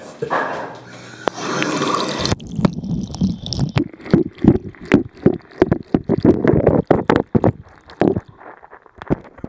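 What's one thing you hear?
Water runs from a tap and splashes.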